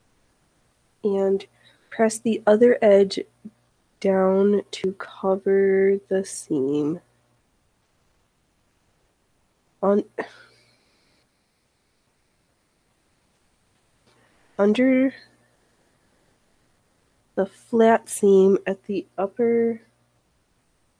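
A woman talks calmly into a close microphone, pausing between phrases.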